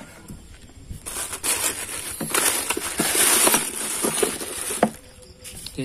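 Hands rummage and rustle through things in a plastic compartment.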